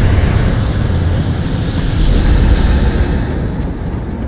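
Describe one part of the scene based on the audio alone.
A magical blast whooshes loudly.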